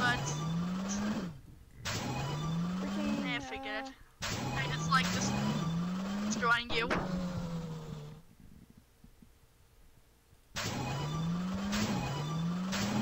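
A toy-like race car engine revs up again and again.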